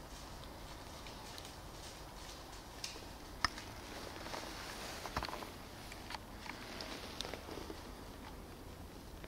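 Branches rustle and twigs snap close by.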